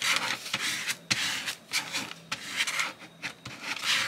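A hand rubs firmly across paper.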